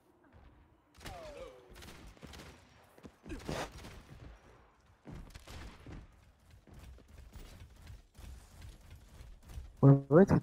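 Gunshots crack in a game.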